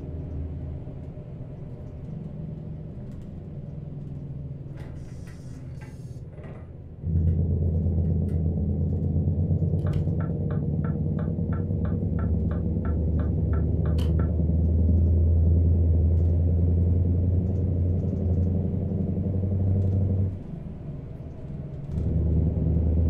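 A diesel truck engine drones while cruising on a highway.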